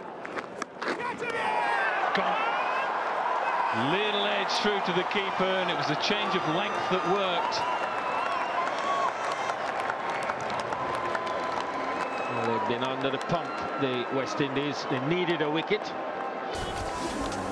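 A crowd cheers and claps loudly outdoors.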